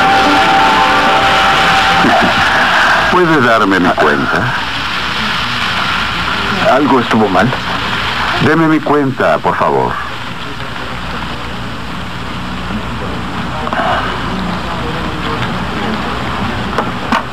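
A crowd of diners murmurs in the background.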